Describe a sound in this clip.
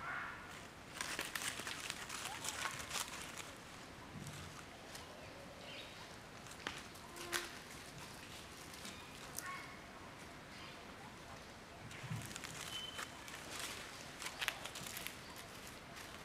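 A monkey crunches on corn.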